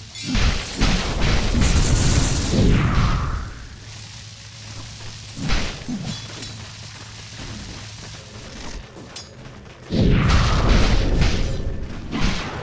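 Spell blasts and clashes burst out in a game battle.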